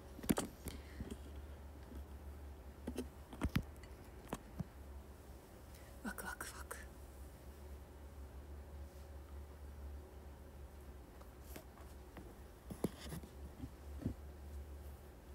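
A young woman speaks softly and sparsely into a close microphone.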